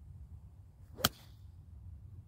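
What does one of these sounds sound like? A golf club strikes a ball with a short, sharp crack.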